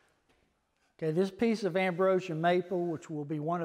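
An older man speaks calmly and clearly into a microphone, nearby.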